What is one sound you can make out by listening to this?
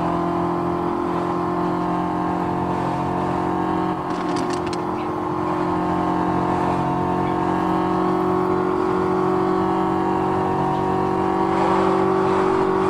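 A sports car engine hums steadily at speed.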